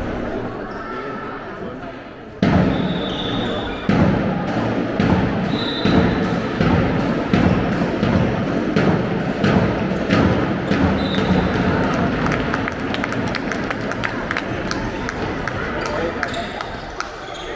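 A crowd of spectators murmurs and cheers.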